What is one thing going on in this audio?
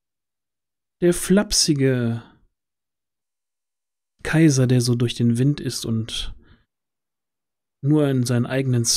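A man speaks with animation through a headset microphone in an online call.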